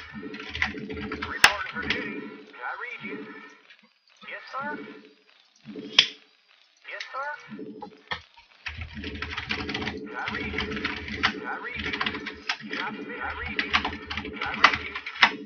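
Small mining tools tap and click steadily in a game.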